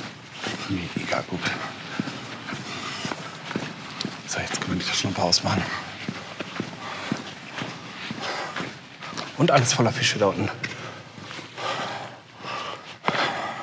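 Water laps and splashes in an echoing tunnel.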